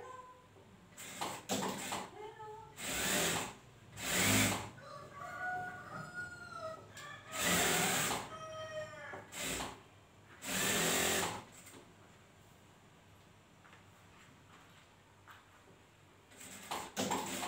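A sewing machine whirs in short bursts.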